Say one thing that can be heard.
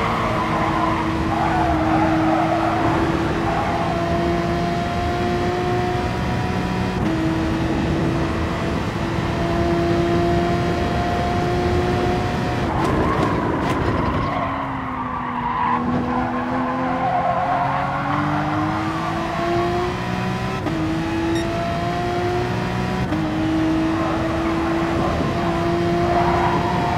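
A racing car engine roars at high revs, shifting up through the gears and dropping in pitch when braking for corners.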